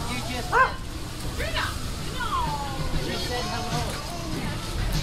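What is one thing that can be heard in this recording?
A man and a woman chat nearby, outdoors.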